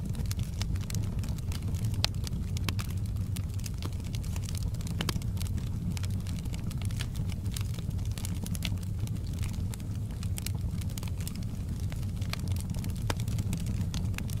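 Burning logs crackle and pop.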